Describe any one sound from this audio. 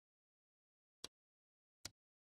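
A game menu clicks softly twice.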